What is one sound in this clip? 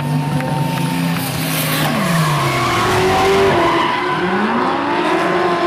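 Drift car engines roar at high revs.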